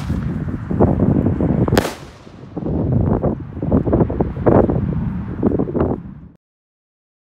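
Fireworks bang and crackle in the night sky.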